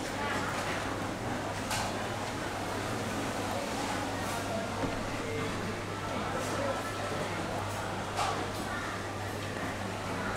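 A metal spoon clinks against a plastic bowl.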